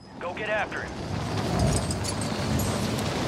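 Wind rushes loudly past during a fall.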